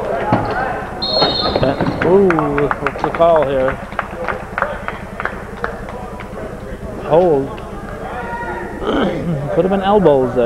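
A basketball bounces repeatedly on a wooden floor.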